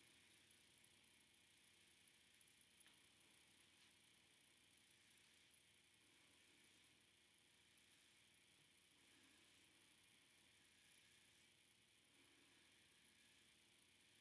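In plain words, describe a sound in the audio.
Gloved fingers rub and rustle softly through short hair.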